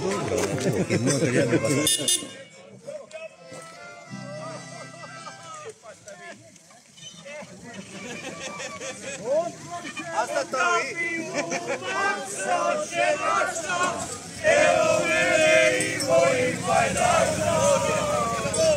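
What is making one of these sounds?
A group of men and women sing together loudly outdoors.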